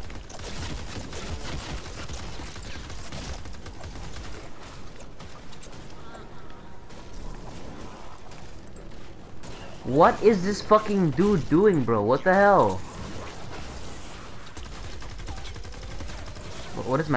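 An energy rifle fires rapid zapping shots.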